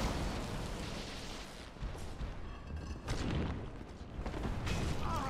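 Weapons clash in a game fight.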